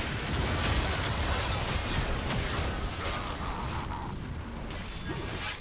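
Spell blasts and weapon hits from a fantasy battle game clash and burst rapidly.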